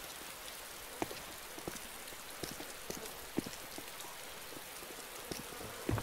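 Footsteps thud on a hard floor at a walking pace.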